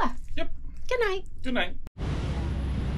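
A woman laughs.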